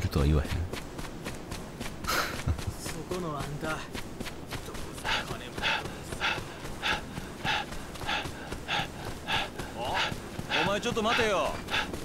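Footsteps run quickly over packed dirt.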